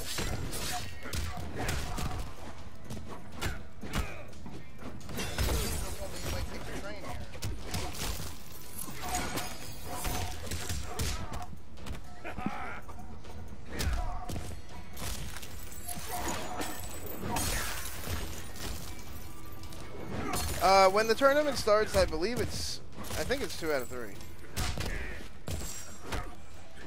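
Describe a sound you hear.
Punches and kicks land with heavy thuds in quick bursts.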